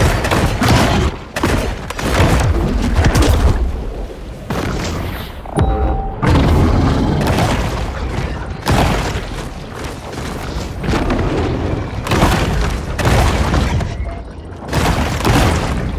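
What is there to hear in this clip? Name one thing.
Water splashes and churns as a large fish thrashes at the surface.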